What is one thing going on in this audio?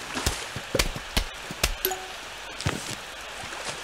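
Short video game sound effects click and chime.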